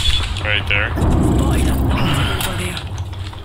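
A metal door slides open with a heavy whoosh.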